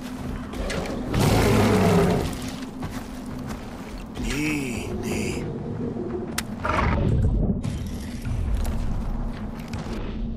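A big cat growls and snarls.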